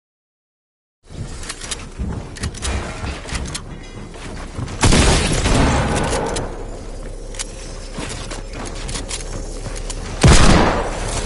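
Video game gunfire rings out in rapid bursts.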